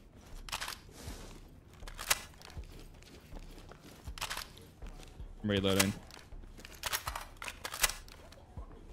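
A rifle magazine clicks and rattles as it is swapped.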